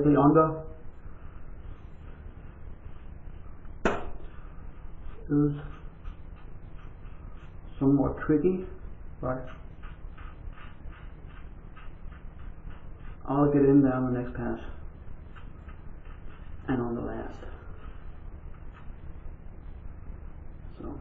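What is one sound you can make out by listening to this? A razor scrapes across stubble in quick strokes.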